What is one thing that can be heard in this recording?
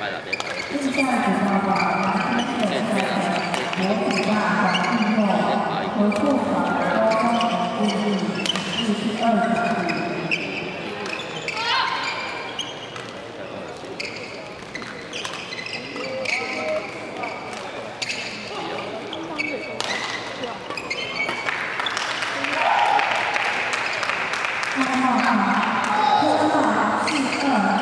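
Badminton rackets sharply hit a shuttlecock back and forth.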